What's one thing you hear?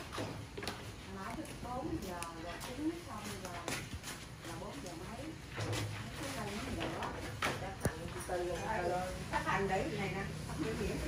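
Several women talk and chatter nearby.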